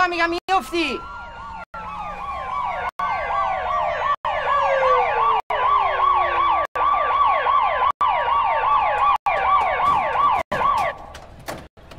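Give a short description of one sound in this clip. An ambulance siren wails loudly and then stops.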